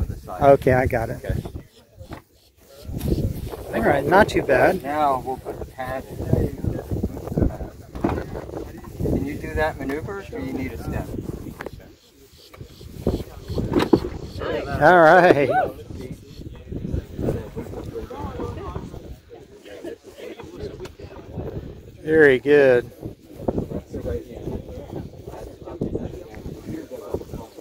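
Men talk nearby outdoors with animation.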